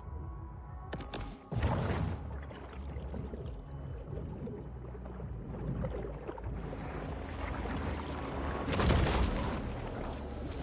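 Water whooshes around a creature swimming underwater.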